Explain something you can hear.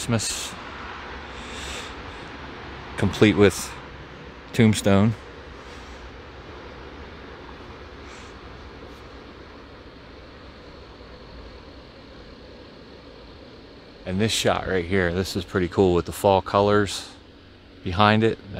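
Electric blower fans hum inside inflatable decorations outdoors.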